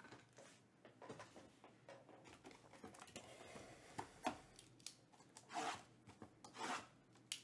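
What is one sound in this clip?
Cardboard boxes slide and scrape on a table.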